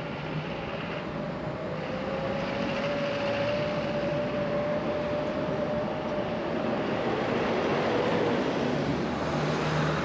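Cars drive past on the road.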